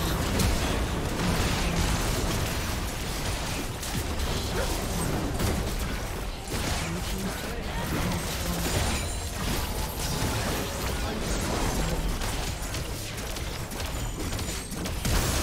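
Video game spells crackle and boom in a busy battle.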